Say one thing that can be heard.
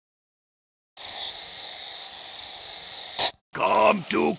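Paint sprays out of nozzles with a steady hiss.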